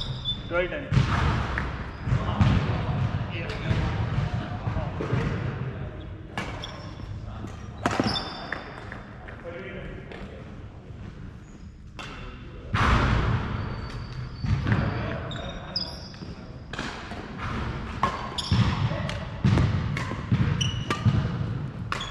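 Badminton rackets strike a shuttlecock with sharp pops in a large echoing hall.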